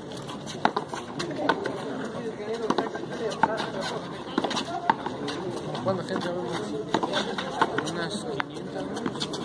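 A ball smacks sharply against a hand and a wall, again and again, with a hollow echo.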